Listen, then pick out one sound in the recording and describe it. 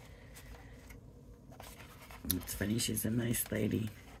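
Stiff paper rustles and taps as it is folded and handled.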